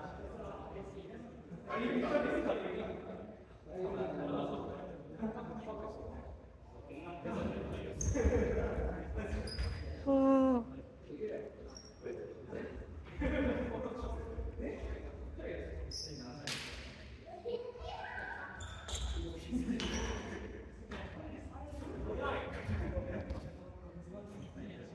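Basketballs bounce on a wooden floor.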